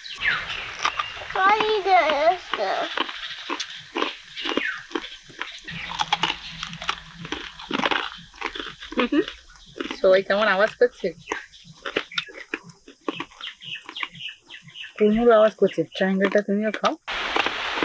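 Crisp food crunches as someone bites and chews.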